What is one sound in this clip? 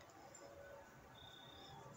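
A wooden spoon stirs in a pot.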